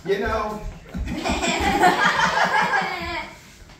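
Several men laugh loudly together nearby.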